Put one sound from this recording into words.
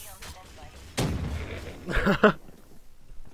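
Gunshots ring out in a short burst.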